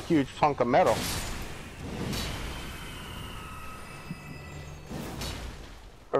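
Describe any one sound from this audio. Blades clash and strike with sharp metallic hits.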